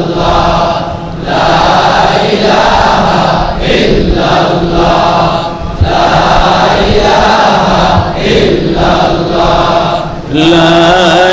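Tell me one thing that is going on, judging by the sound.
A man preaches loudly and with fervour into a microphone, heard through a loudspeaker.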